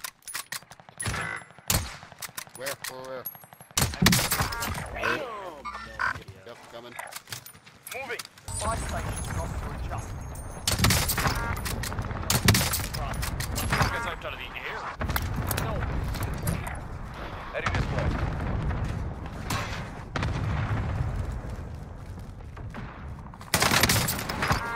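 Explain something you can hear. Gunshots crack loudly in sharp bursts.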